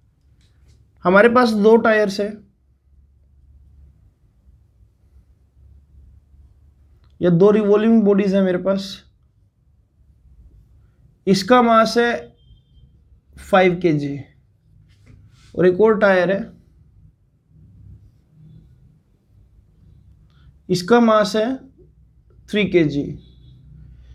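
A man speaks clearly and calmly in short phrases, close by.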